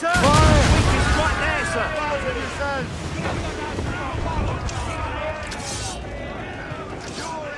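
Heavy waves crash and surge against a wooden ship.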